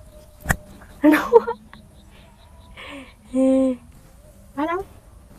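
A young girl speaks cheerfully and with animation close by.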